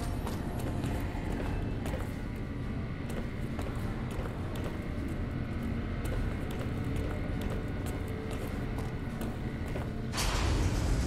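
Footsteps clang on metal grating.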